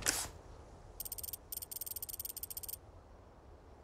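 A menu ticks with rapid, sharp clicks.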